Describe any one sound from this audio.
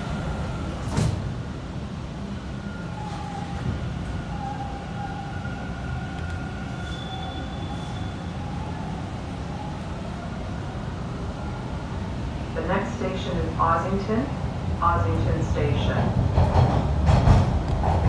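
A subway train rumbles steadily along the track.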